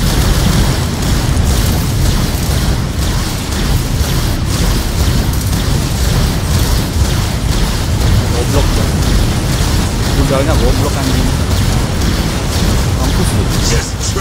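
Heavy laser cannons fire in a steady, roaring blast.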